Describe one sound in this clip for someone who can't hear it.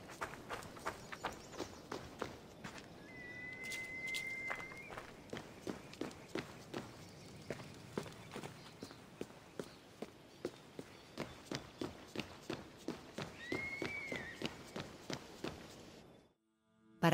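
Quick footsteps run over stone and dirt.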